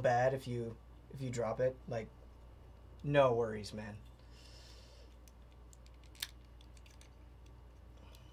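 Small plastic pieces click and rattle in hands.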